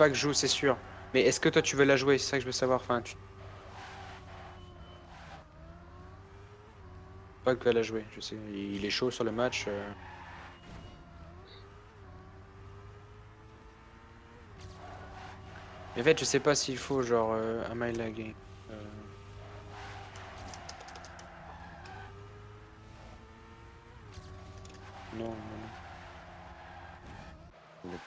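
A racing car engine whines, rising and falling in pitch as it speeds up and slows down.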